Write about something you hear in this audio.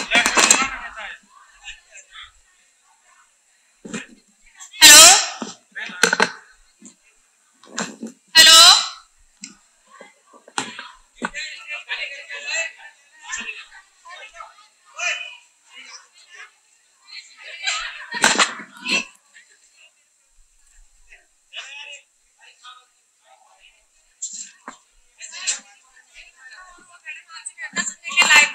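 Several young women chat and laugh close by.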